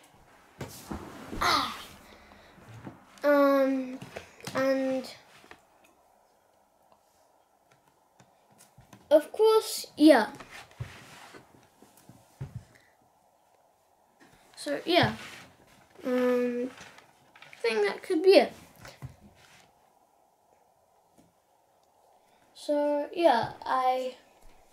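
A child speaks close by with animation, in short bursts.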